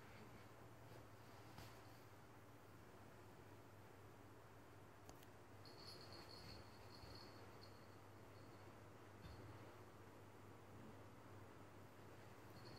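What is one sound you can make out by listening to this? A cat's paws thump softly on a bedspread as the cat pounces.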